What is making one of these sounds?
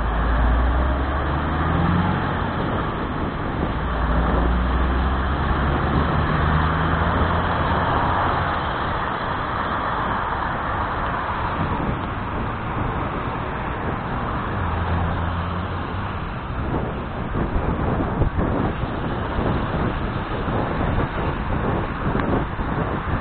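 Wind rushes and buffets loudly past the microphone outdoors.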